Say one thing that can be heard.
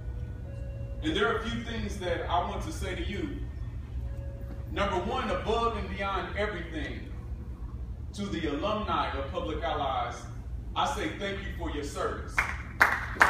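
A man speaks slowly through a microphone in an echoing hall.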